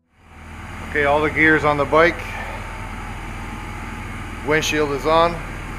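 A man speaks nearby in short, lively bursts.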